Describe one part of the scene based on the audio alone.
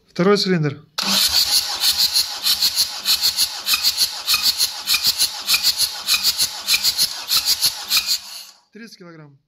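An engine cranks over loudly with a fast, steady, pulsing rhythm.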